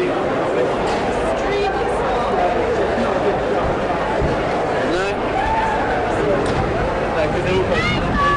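A large crowd murmurs outdoors at a distance.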